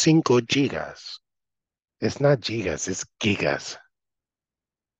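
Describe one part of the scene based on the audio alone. A man speaks calmly through an online call, in short bursts.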